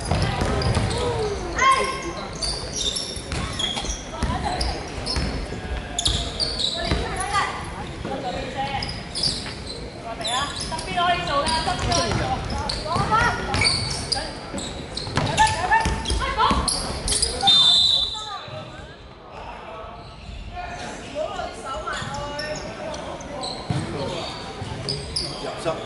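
Young women shout and call to each other across a large echoing hall.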